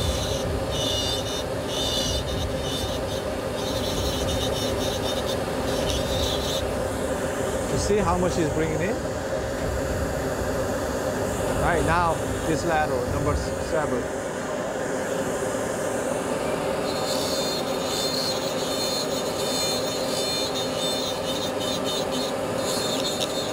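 A small dental drill whirs with a high, steady whine in short bursts.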